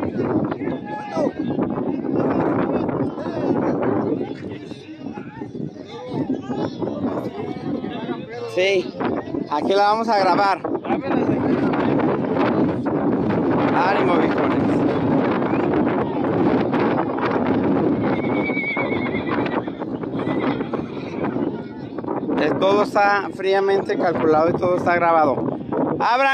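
A crowd of men, women and children chatters and calls out nearby outdoors.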